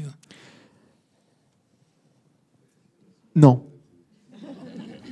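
A man speaks through a microphone in a large room, in short phrases with pauses.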